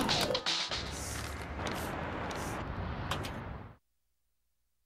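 A stapler clicks as a poster is stapled up.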